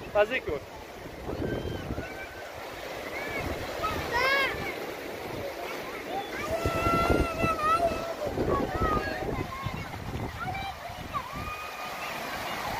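Young children shout and squeal playfully close by.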